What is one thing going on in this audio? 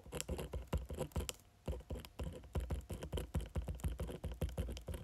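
A pen taps and scratches very close to a microphone.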